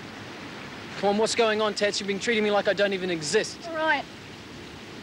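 A young man speaks earnestly up close.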